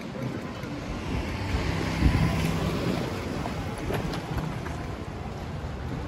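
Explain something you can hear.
A motor scooter passes by nearby.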